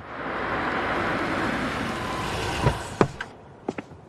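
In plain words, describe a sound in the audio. A car engine hums as a car rolls in on wet pavement.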